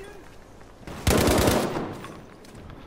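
A rifle fires a loud burst of shots.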